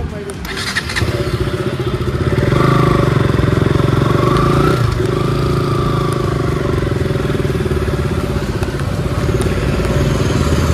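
A motorcycle engine starts and idles with a steady rumble.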